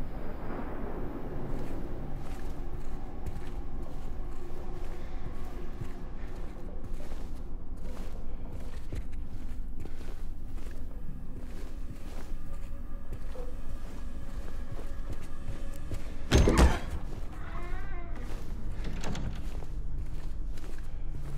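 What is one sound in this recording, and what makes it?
Footsteps fall slowly on a hard floor.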